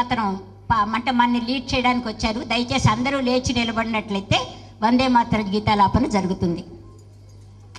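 A woman speaks with animation through a microphone in a large room.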